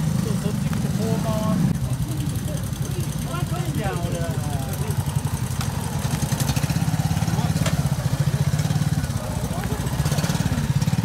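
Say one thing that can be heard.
A motorcycle engine putters and revs close by.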